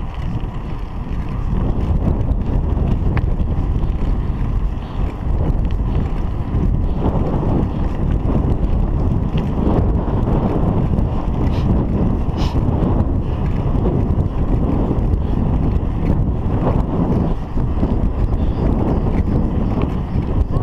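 Wind buffets a microphone while riding outdoors.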